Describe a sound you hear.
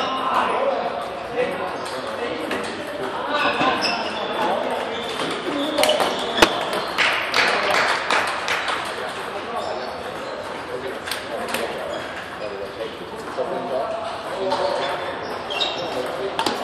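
Men talk in the background of a large echoing hall.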